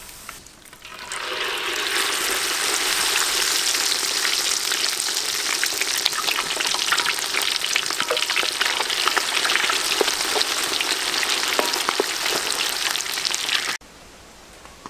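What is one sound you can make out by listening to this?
Hot oil sizzles and crackles loudly as food fries.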